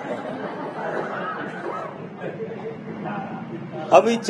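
A middle-aged man laughs softly.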